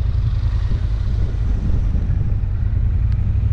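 A van drives past close by and fades away.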